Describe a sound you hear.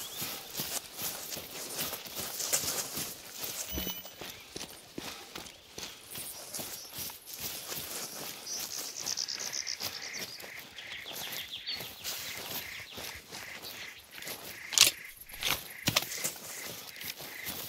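Leafy branches brush and swish past.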